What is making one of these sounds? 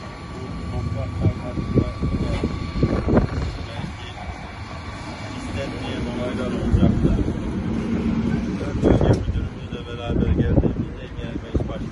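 Heavy machinery rumbles steadily in the distance.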